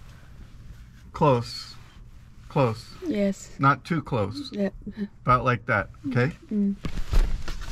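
A middle-aged man speaks calmly, close by, through a headset microphone.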